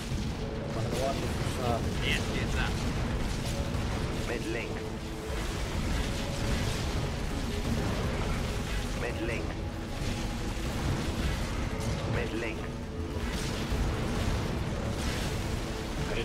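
Laser weapons fire with sharp, buzzing zaps.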